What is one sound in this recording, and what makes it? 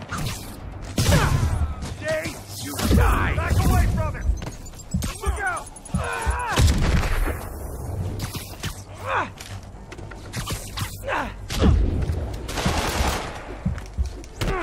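Punches and kicks thud heavily in a fast fight.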